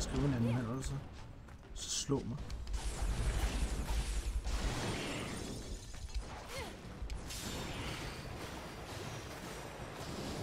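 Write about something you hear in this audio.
Battle sound effects clash and rumble from a video game.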